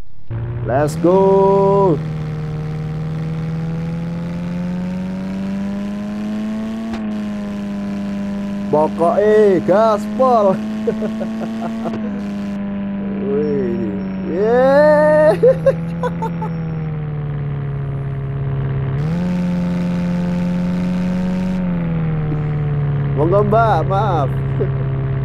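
A van engine hums steadily, rising and falling in pitch as it speeds up and slows down.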